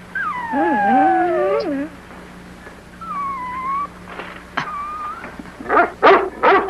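Several dogs howl together in a wavering chorus.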